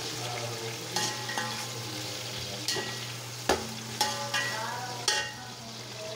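A metal spatula scrapes and clanks against a metal pot.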